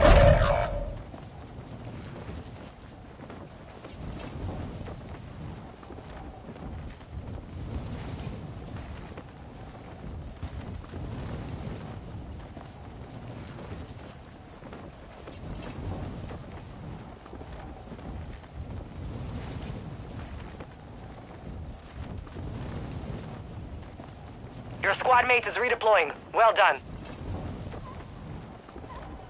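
Wind rushes and roars steadily during a fall through the air.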